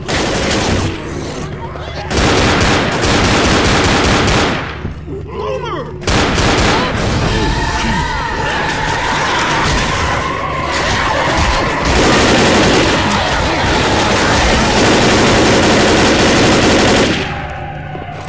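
A shotgun fires in loud, booming blasts.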